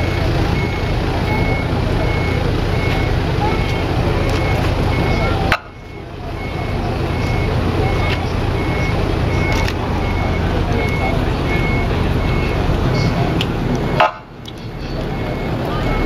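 Vehicle engines idle nearby.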